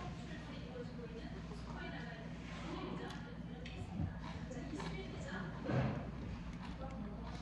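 Metal chopsticks clink against a dish.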